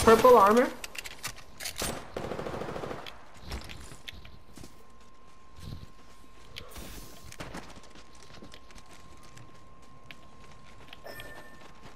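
Footsteps patter quickly over the ground.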